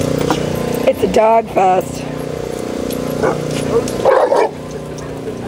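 A dog barks loudly nearby.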